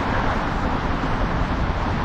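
An explosion bursts on the ground below.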